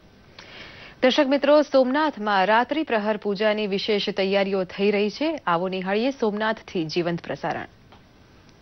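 A woman reads out calmly and clearly through a microphone.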